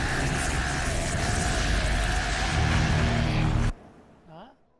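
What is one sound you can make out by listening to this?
A loud energy beam roars and crackles.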